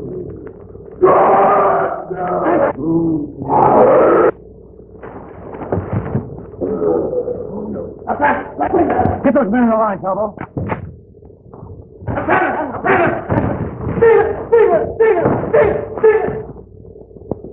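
Men shout and grunt while struggling.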